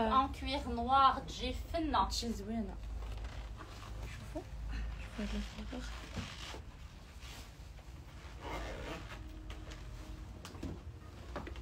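A fur jacket rustles as it is handled on a hanger.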